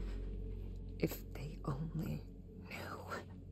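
A woman speaks quietly and slowly, close by.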